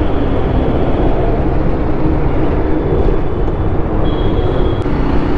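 Wind rushes loudly past the rider on a moving motorbike.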